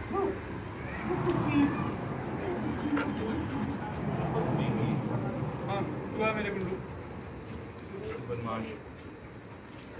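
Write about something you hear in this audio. A man talks in a playful voice nearby.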